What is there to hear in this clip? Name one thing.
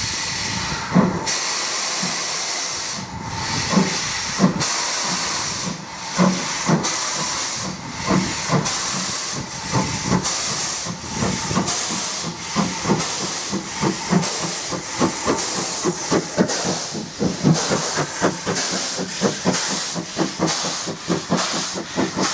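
A steam locomotive chuffs in quickening beats as it pulls away.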